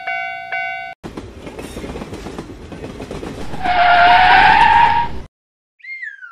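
A train rumbles along the tracks toward the listener.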